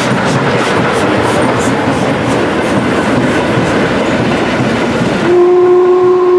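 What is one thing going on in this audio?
A steam locomotive's wheels clatter and rumble close by on the rails.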